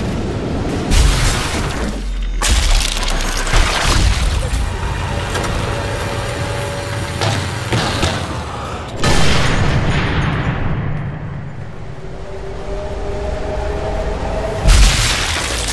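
A rifle fires with a loud, echoing boom.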